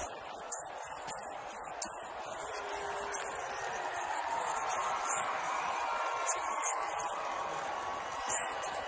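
A large crowd cheers loudly, swelling as it goes on.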